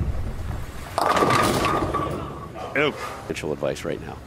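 Pins crash and scatter loudly as a bowling ball strikes them.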